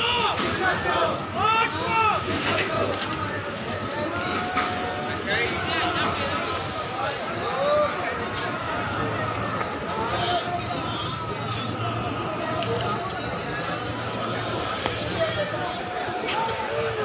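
A crowd of men murmurs and chatters outdoors.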